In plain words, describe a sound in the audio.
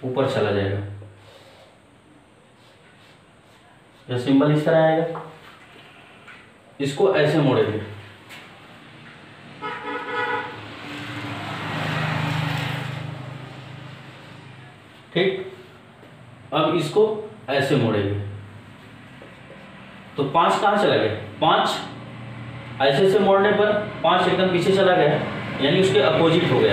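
A man speaks steadily in a lecturing tone, close by.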